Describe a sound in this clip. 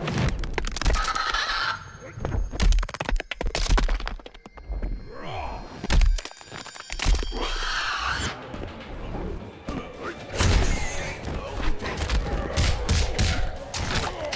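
Bones crunch and flesh squelches in a gory attack.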